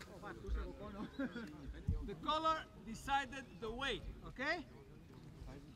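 Men talk and call out to each other outdoors at a distance.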